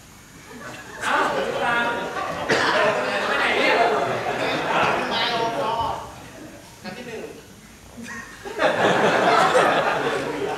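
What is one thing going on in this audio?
A young man speaks calmly to two others.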